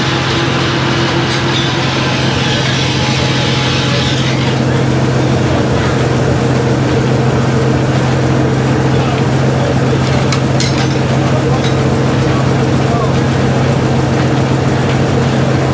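A sawmill engine hums with a steady, loud drone.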